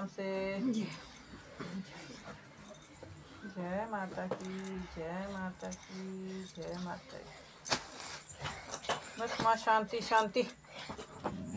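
A woman sings in a drawn-out, wavering voice nearby.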